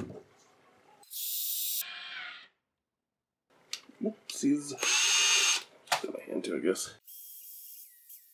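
A cordless drill whirs in short bursts, buffing metal.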